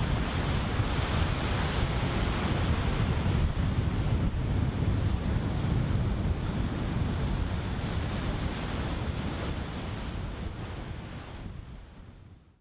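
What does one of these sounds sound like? Wind buffets the microphone outdoors and slowly fades.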